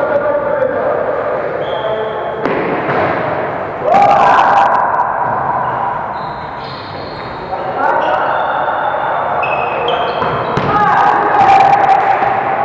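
Several men and women shout and call out to each other in a large echoing hall.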